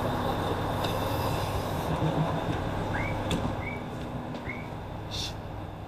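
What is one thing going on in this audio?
Footsteps step from a platform onto a train floor.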